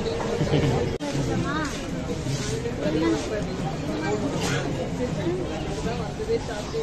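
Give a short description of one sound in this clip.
Several adults chatter in the background.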